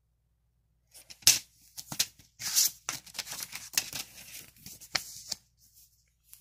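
A paper insert rustles as it is unfolded.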